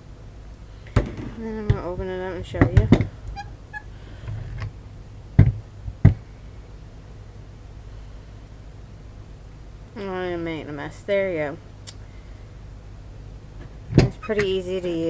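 A plastic citrus squeezer clicks and knocks as it is handled.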